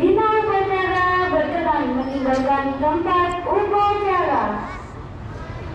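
A young man shouts a long drawn-out command outdoors.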